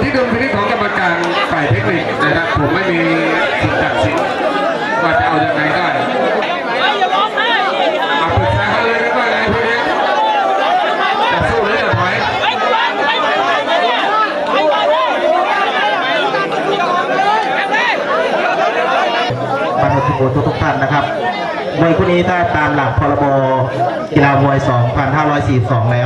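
A large crowd chatters and shouts noisily throughout.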